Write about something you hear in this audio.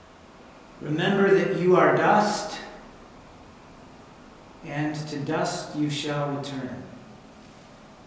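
A man speaks calmly and solemnly nearby.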